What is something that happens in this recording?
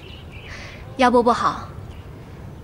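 A young woman speaks a short greeting.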